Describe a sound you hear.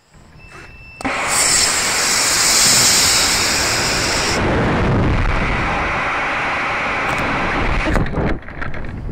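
A rocket motor ignites with a loud, rushing roar.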